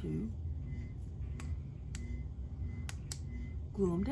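A plastic flashlight clicks and knocks as it is handled.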